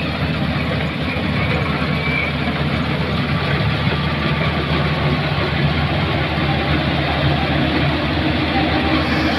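A combine harvester engine drones steadily nearby.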